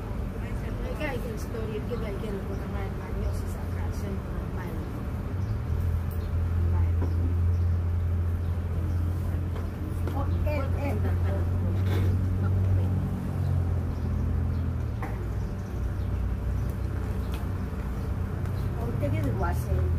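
An elderly woman reads aloud, close by.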